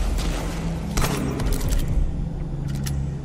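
A heavy door latch rattles and clicks.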